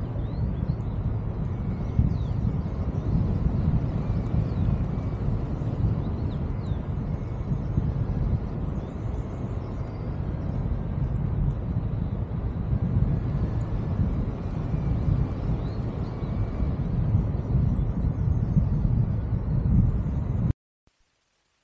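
Strong wind rushes and buffets loudly outdoors.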